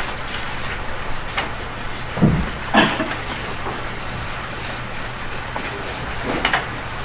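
A man speaks now and then in short bursts.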